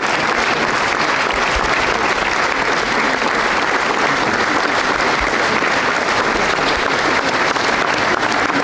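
A crowd applauds steadily in a large hall.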